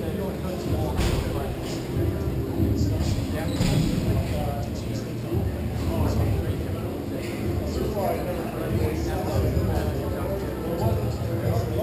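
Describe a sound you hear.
Hockey sticks clack against a ball and the floor.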